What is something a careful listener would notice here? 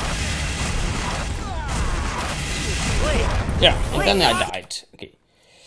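A heavy gun fires in rapid bursts.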